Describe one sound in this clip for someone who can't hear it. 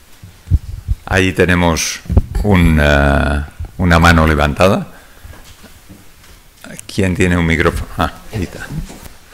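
An elderly man speaks with animation into a microphone in an echoing hall.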